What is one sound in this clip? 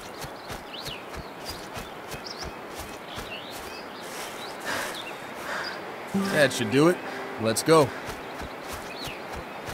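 Footsteps crunch through grass and leaves at a steady pace.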